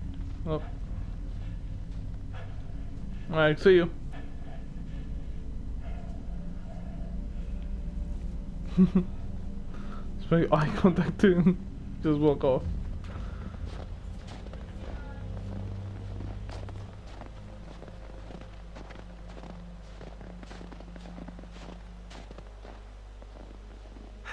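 Footsteps crunch slowly through snow.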